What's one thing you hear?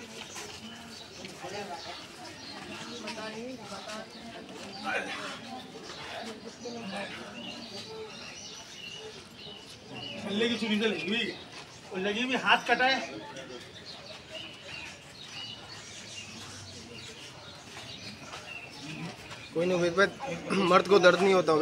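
Several men talk and call out nearby, outdoors.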